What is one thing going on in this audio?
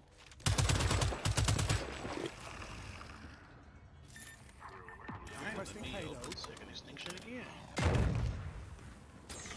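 Rapid gunfire bursts out loudly in quick volleys.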